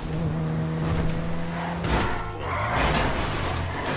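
A car crashes into a post with a loud bang.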